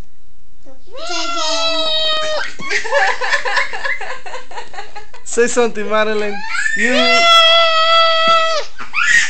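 A toddler squeals in long, high cries close by.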